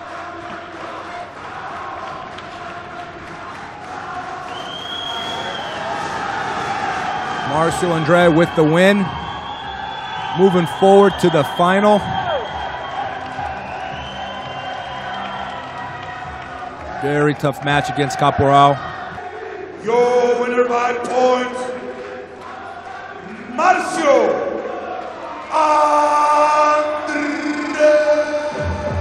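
A crowd cheers and applauds in the distance.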